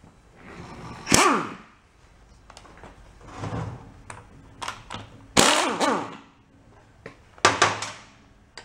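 An air impact wrench rattles in short, loud bursts.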